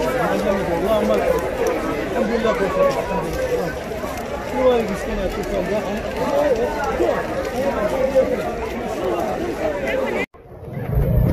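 A large crowd of men and women chants and shouts loudly outdoors.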